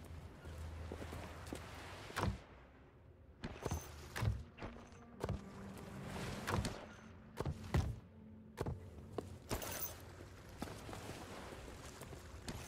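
Footsteps clatter on stone.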